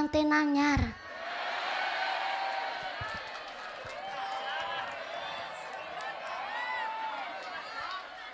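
A crowd of women sings along together.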